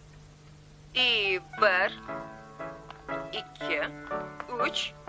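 A young woman sings.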